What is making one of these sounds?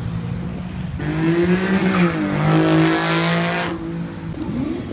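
A sports car accelerates past.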